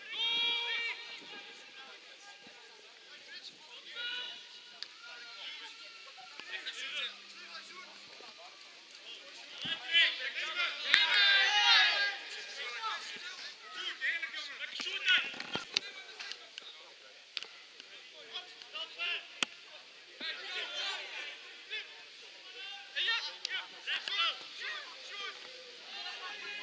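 Young players shout to each other outdoors in the open air.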